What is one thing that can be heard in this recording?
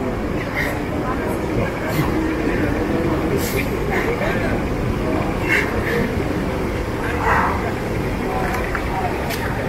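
A man sobs and weeps.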